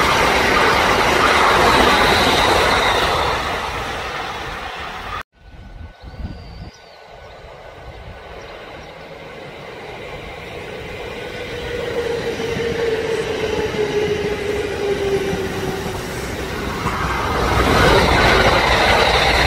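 An electric train rushes past close by with a loud roar.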